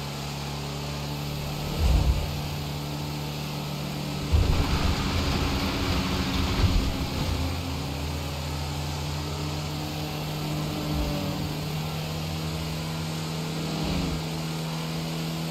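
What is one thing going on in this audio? A truck engine drones steadily as it drives along a road.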